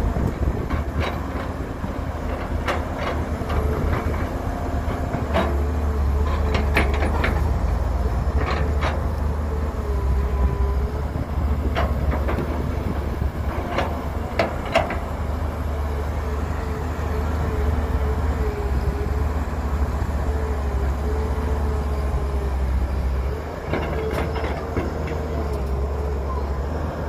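Metal clanks and knocks from an excavator's bucket and tracks.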